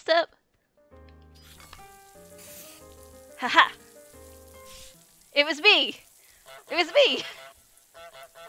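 Water sprays and hisses from a sprinkler.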